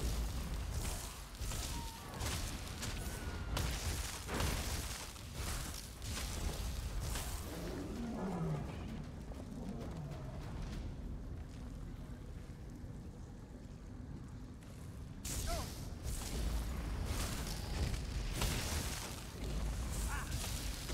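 Magic blasts and crackling bursts go off in quick succession.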